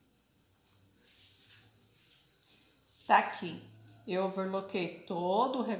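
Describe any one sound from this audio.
Hands brush and rustle fabric.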